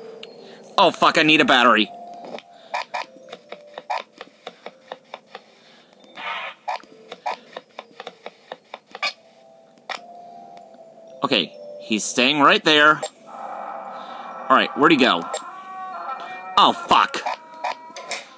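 A game's electronic screeches and tones play from laptop speakers.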